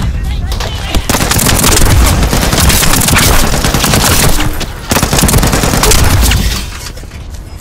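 Gunfire crackles in rapid, loud bursts.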